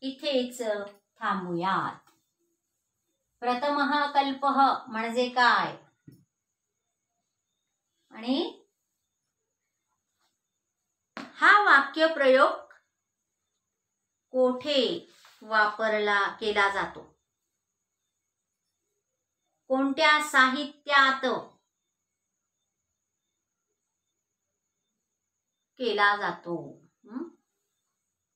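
A middle-aged woman speaks calmly and clearly in short phrases, close by, with pauses between them.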